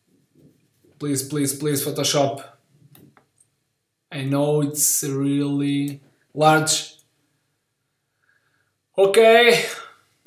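A man speaks calmly into a close microphone, in short phrases with pauses.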